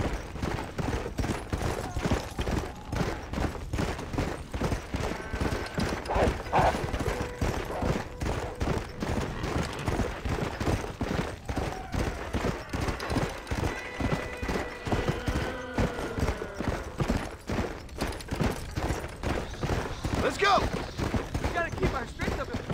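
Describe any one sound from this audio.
Horse hooves pound rapidly over the ground at a gallop.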